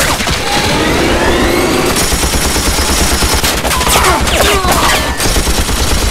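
A rotary machine gun whirs as its barrels spin.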